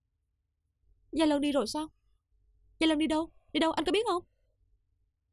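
A young woman speaks fearfully close by.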